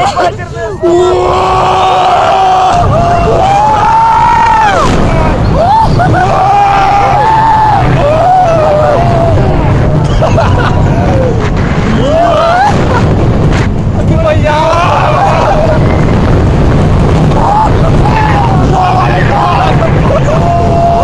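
Wind rushes and roars past on a fast ride.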